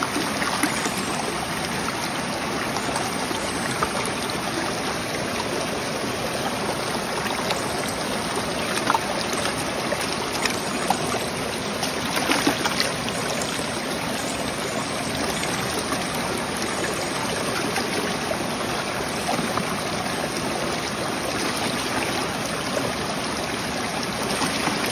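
Water sloshes and splashes as a scrubbing pad is swirled in a bucket.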